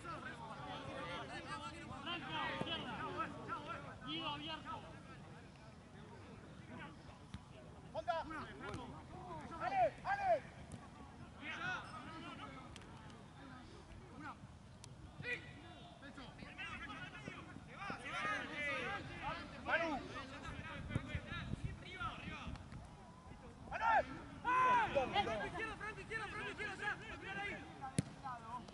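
Young men shout and call out across an open outdoor pitch.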